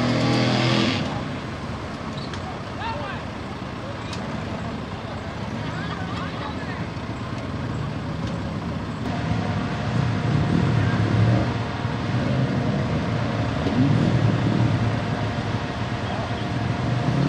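An off-road vehicle's engine revs and rumbles as it churns through deep mud, outdoors.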